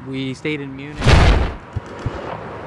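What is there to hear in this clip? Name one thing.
Wind gusts across a microphone outdoors.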